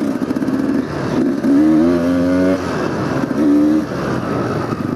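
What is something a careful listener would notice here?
A dirt bike engine revs up sharply.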